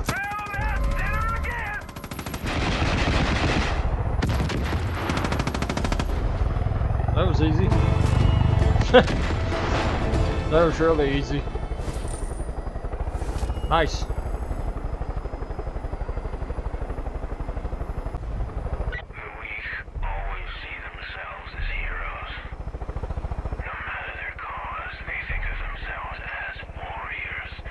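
A helicopter's rotor throbs steadily.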